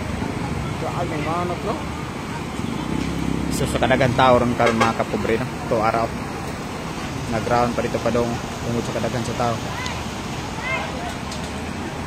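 Men talk and call out loudly nearby outdoors.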